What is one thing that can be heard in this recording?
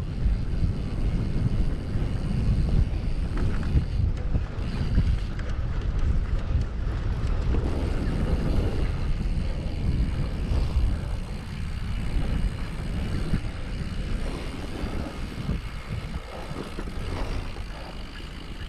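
Bicycle tyres rumble over a bumpy grass track.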